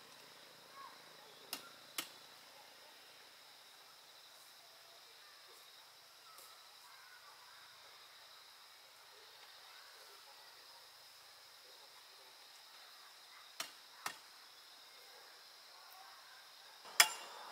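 Dry palm leaves rustle softly as they are handled.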